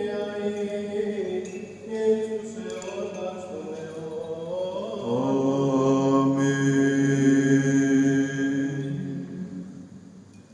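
A man chants in a deep voice through a microphone in a large echoing hall.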